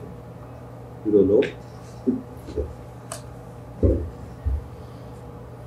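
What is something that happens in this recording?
Soft knocks and bumps sound close to a microphone.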